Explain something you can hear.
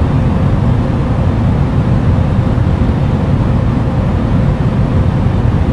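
Jet engines rumble steadily.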